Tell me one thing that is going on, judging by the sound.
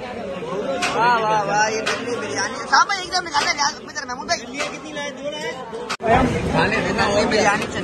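A metal spoon scrapes and clinks against a metal plate.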